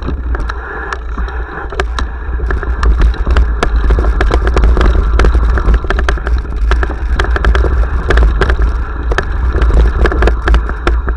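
A bicycle rattles and clatters over a rough, stony trail.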